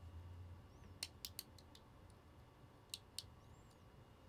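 Small plastic model pieces click and snap sharply.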